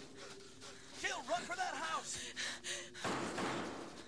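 A man cries out in distress, close by.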